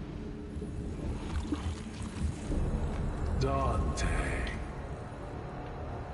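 A monster growls low and rumbling.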